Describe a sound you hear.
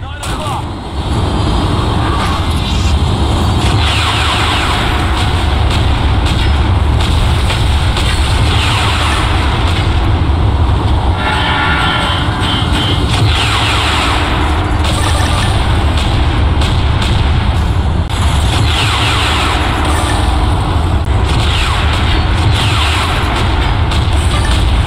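Explosions boom and rumble loudly.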